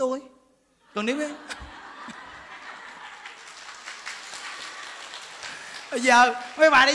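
A crowd of women laughs together.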